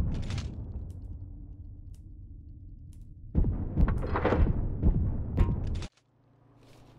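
A spaceship engine roars.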